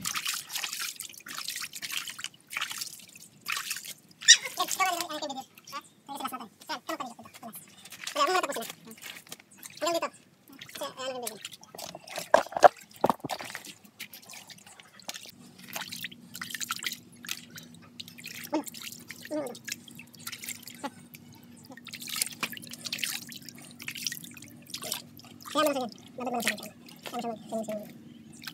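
Water splashes and drips.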